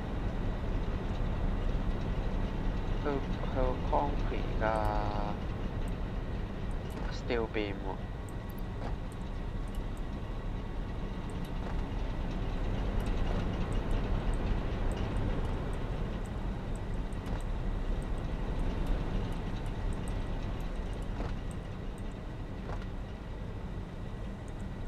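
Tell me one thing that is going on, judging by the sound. Machinery hums steadily with a low drone.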